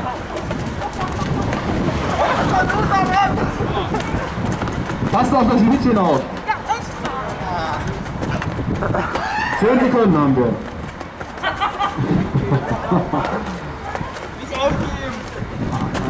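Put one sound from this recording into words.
Young men shout and yell outdoors.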